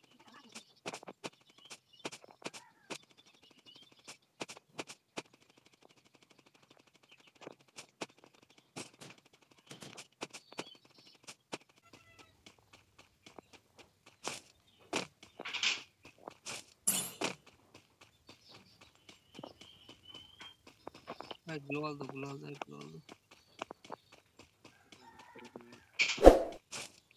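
Quick footsteps patter on the ground.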